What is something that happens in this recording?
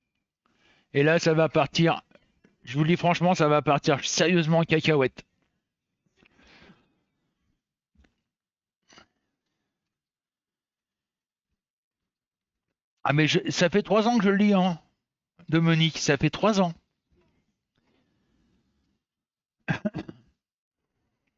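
A middle-aged man talks with animation into a close headset microphone, in bursts with pauses.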